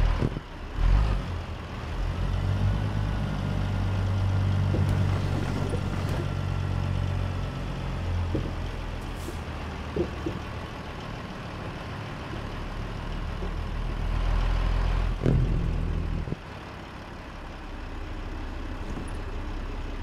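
A truck's diesel engine rumbles steadily and drops to a quieter idle near the end.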